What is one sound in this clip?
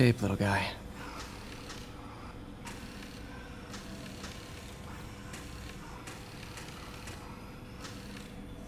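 A mechanical arm whirs and clicks softly as it moves.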